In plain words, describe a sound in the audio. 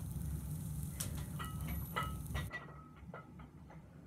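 Metal weight plates clink and knock against each other.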